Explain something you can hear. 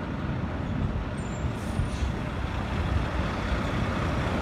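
A truck engine rumbles, drawing closer.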